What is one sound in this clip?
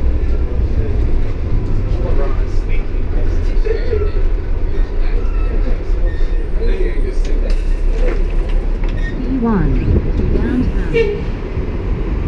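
A city bus engine rumbles, heard from inside the bus.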